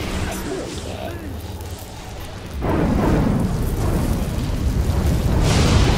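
Energy blasts crackle and boom in a fight.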